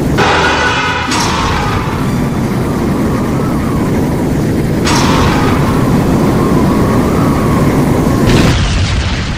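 A creature roars loudly.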